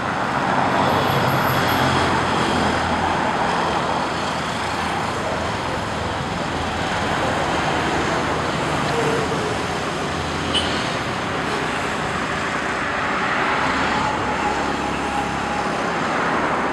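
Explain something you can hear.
Motorbike engines drone as they ride past on a road.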